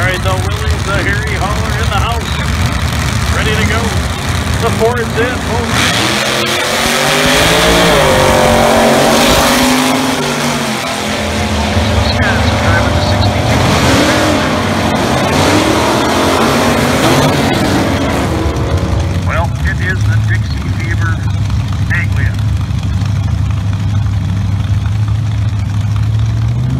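Engines idle with a deep, rumbling throb.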